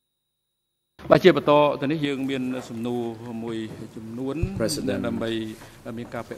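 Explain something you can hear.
A man speaks calmly into a microphone, heard through a loudspeaker.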